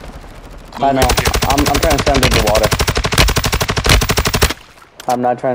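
A rifle fires rapidly in a long burst.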